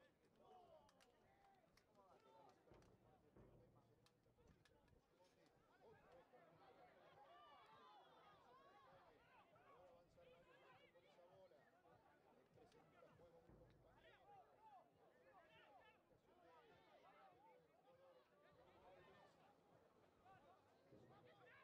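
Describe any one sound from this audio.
A crowd of spectators murmurs and calls out outdoors.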